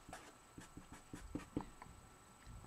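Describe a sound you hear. A marker squeaks and taps on paper.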